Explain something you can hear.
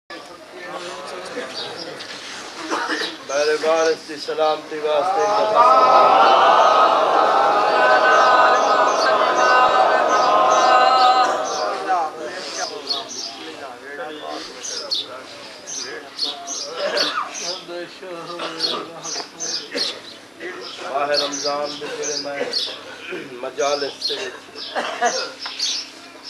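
A man preaches with passion through a loudspeaker in an echoing hall.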